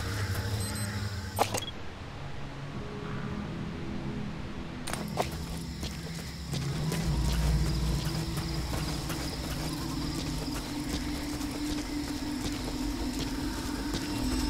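Footsteps run over dry grass and dirt.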